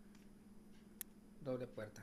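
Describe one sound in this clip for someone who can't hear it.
A small metal cover clicks as it is pulled off a device.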